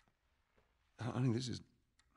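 A man speaks in a low, gentle voice.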